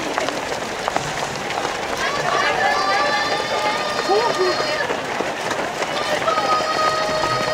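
Many runners' footsteps patter on the pavement.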